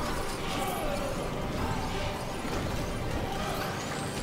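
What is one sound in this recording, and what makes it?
A magical portal swirls with a low, humming whoosh.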